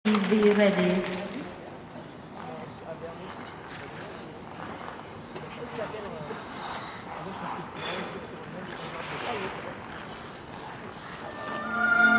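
Ice skate blades glide and scrape softly on ice.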